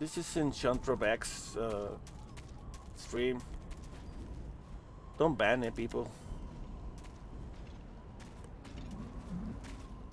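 Footsteps scuff softly over rocky ground.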